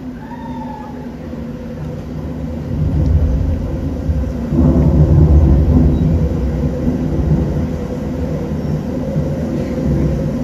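A band plays music with a deep pulsing bass, growing louder partway through.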